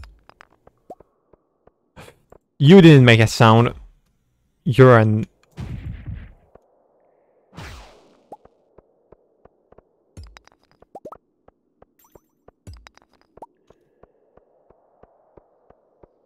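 A pickaxe chips at stones with short, sharp knocks.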